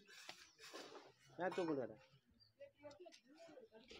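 A trowel scrapes and taps on bricks.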